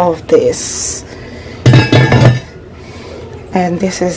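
A heavy pot lid knocks softly as a hand lifts it.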